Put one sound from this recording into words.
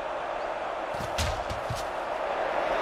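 Football players collide in a tackle.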